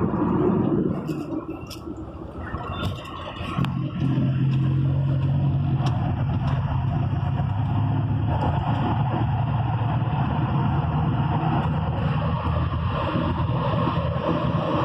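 A diesel truck engine drones from inside the cab while cruising.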